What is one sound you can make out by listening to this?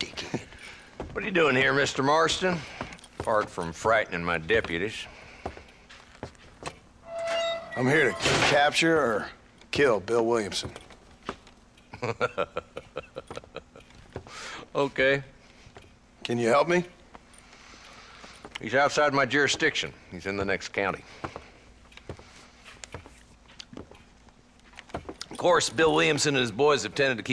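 An elderly man speaks gruffly and calmly.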